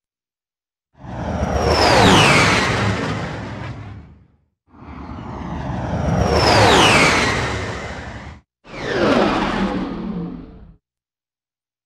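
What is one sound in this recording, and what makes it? A spaceship roars past with a falling whoosh, several times.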